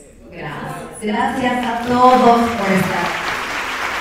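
A woman speaks excitedly into a microphone, heard through loudspeakers in a large hall.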